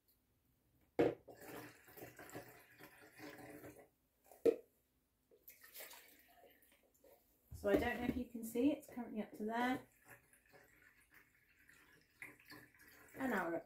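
Water pours from a jug into a plastic container.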